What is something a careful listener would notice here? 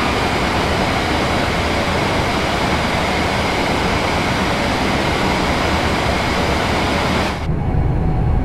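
A train roars along the tracks at speed.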